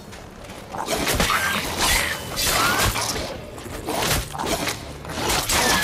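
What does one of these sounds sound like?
Monsters snarl and growl.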